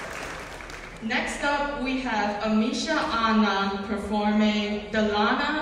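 A second young woman answers into a microphone.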